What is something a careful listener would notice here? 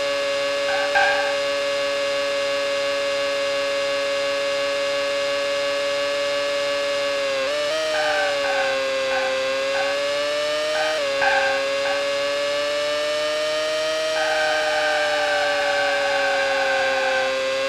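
A race car engine whines steadily at high speed, dropping in pitch on gear changes.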